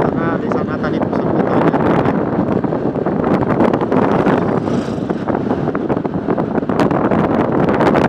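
Wind buffets a microphone on a moving motorcycle.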